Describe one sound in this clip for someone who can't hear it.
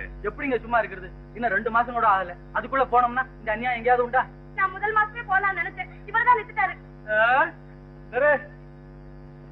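An elderly man speaks with animation.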